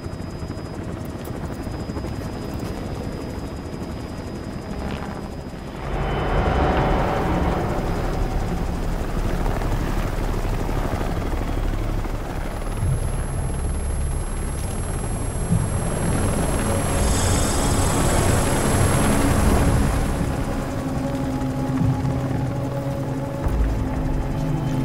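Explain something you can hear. A helicopter's rotor thumps and roars loudly from close by.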